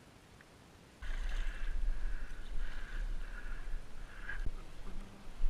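A fish splashes and thrashes in shallow water.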